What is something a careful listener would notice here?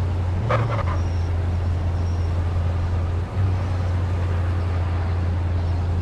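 Tyres crunch over snow as a car pulls away.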